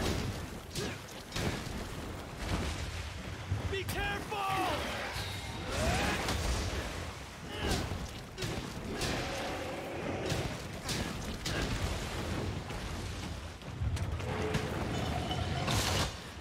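A sword clangs and slashes in rapid strikes.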